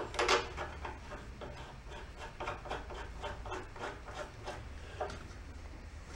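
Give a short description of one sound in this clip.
A ratchet wrench clicks rapidly on a metal fitting.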